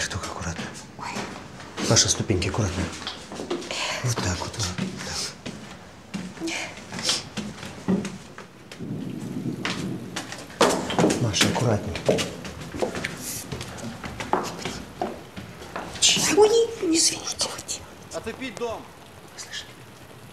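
A woman speaks quietly, close by.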